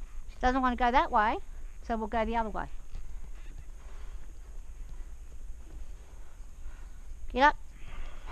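Horse hooves thud softly on dirt.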